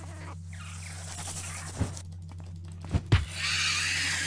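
A giant spider creature hisses and clicks close by.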